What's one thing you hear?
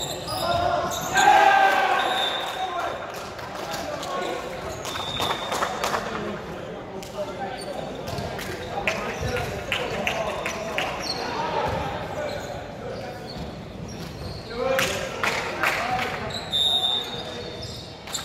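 Young women shout and cheer on the court.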